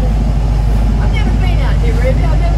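An elderly woman speaks nearby.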